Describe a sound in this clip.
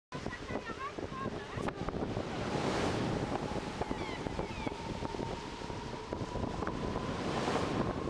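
Waves wash and break steadily on a shore.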